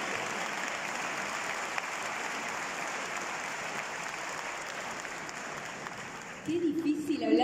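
Hands clap in steady applause.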